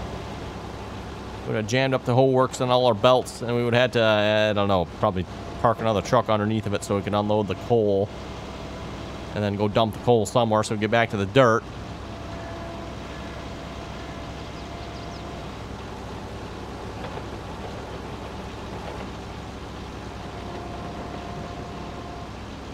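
An excavator engine hums steadily.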